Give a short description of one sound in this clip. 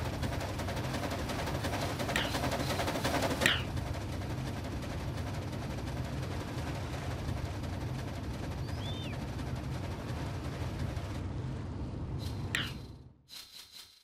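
A steam train rumbles and chugs along a track.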